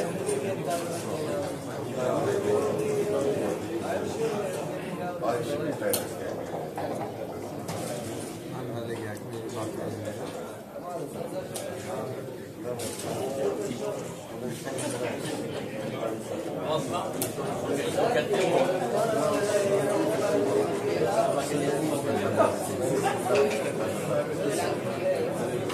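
Several adults murmur and talk quietly in a room.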